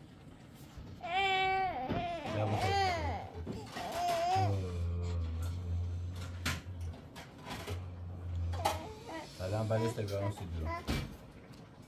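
A toddler whines and cries close by.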